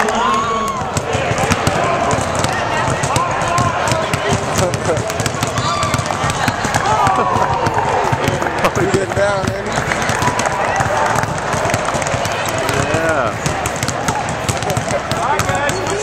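A basketball is dribbled on a hardwood floor.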